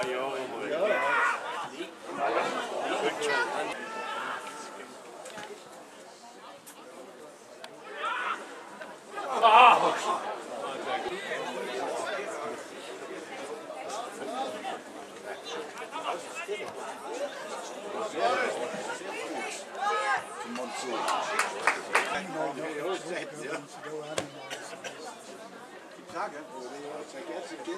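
Football players shout to each other across an open pitch outdoors.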